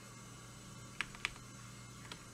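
A game menu blips as the selection moves.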